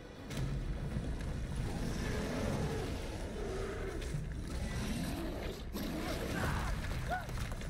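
A rope creaks and rustles as hands pull it tight.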